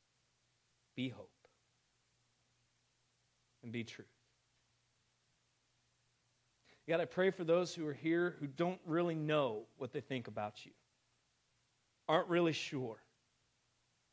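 A man speaks through a microphone in short bursts, with pauses between them.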